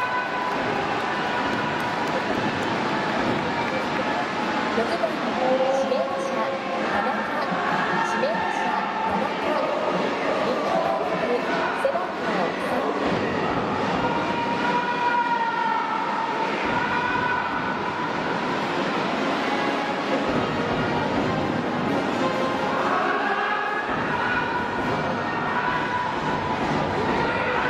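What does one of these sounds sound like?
A large stadium crowd chants, sings and cheers steadily throughout.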